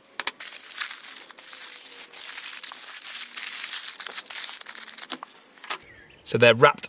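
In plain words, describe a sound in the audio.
Foil crinkles and rustles as it is scrunched by hand.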